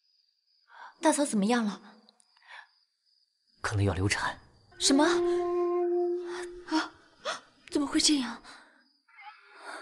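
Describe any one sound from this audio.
A young woman speaks tearfully and anxiously, close by.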